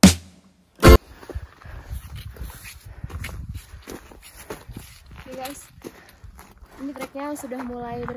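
Footsteps crunch on a gravelly dirt trail.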